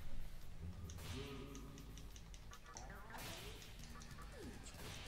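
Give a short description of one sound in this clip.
Video game menu selections make short beeps.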